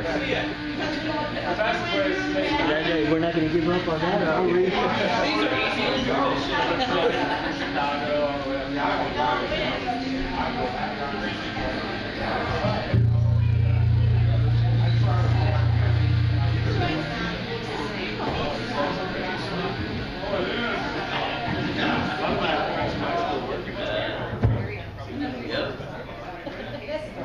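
A rock band plays loudly on electric guitars and bass.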